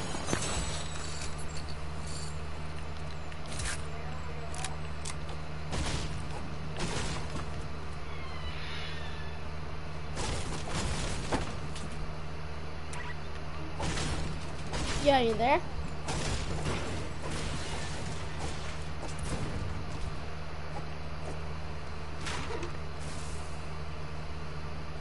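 A game character's footsteps patter on grass.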